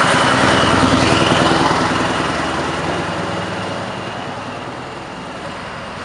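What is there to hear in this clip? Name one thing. A truck's diesel engine roars loudly as it pulls away and slowly fades.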